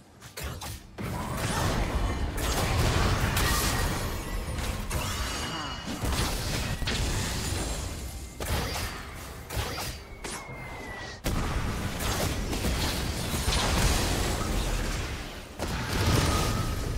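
Spell blasts and magic effects crackle and boom during a battle.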